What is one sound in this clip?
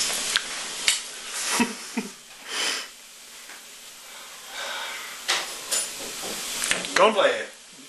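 A man sobs and speaks in a broken, tearful voice close by.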